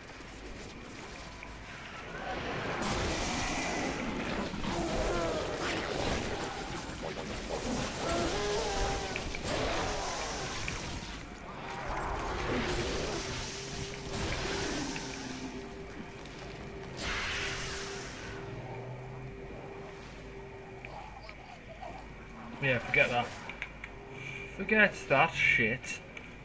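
An energy blade swings and slashes with hissing whooshes.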